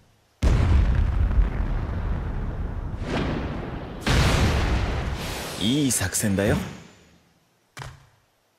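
A dull blast of smoke booms and rumbles, then fades.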